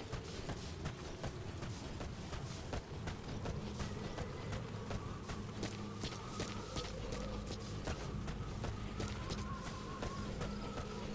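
Footsteps crunch quickly over dry gravel.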